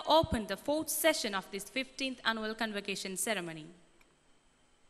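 A woman speaks clearly into a microphone over a loudspeaker, in a large hall.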